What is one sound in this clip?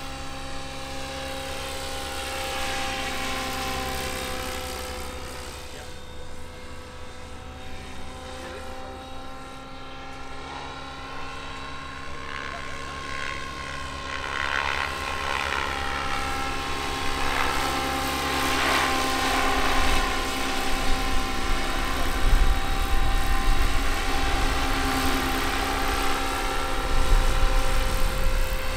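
A model helicopter's engine whines steadily overhead, rising and falling in pitch as it flies past.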